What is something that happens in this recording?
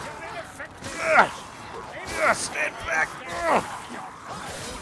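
Creatures shriek in pain.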